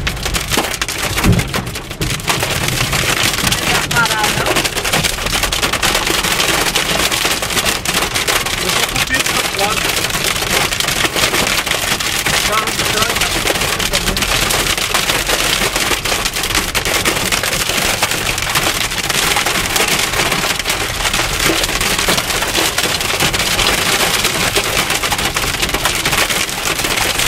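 Heavy rain pounds hard on a car's windscreen.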